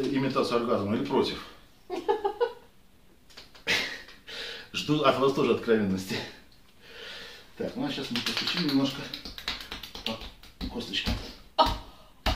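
A middle-aged man talks calmly and steadily, close by.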